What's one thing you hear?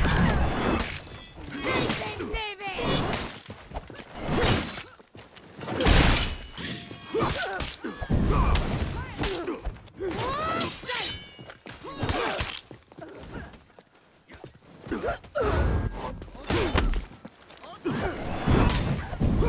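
Swords clash and clang in repeated bursts.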